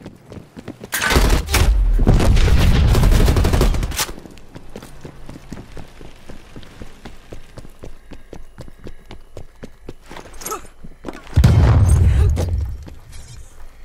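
Gunshots rattle in rapid bursts.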